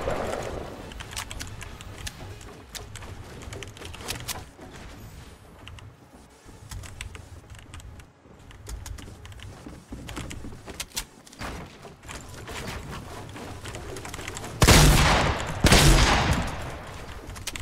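Wooden walls and ramps clack as a game character builds quickly.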